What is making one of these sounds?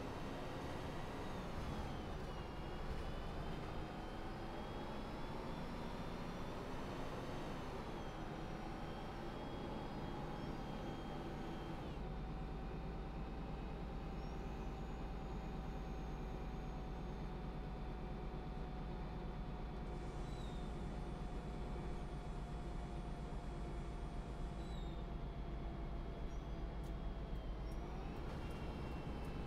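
A bus engine hums and whines, its pitch rising and falling as it drives.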